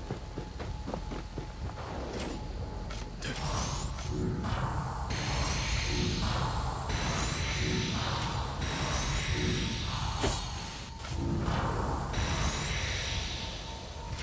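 A blade whooshes through the air in quick swings.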